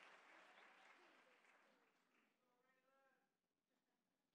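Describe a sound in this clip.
A large crowd cheers loudly, then fades away.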